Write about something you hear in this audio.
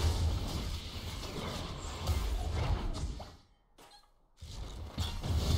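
Game sound effects of blows and magic impacts hit in quick bursts.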